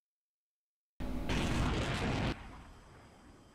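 A loud explosion bursts and rumbles, then fades.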